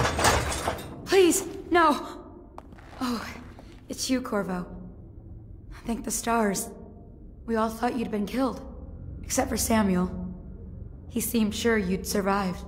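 A young woman speaks nervously and quickly.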